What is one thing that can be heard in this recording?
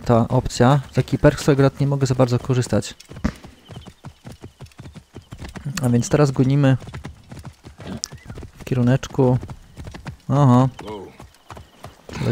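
Horse hooves clop on a dirt path.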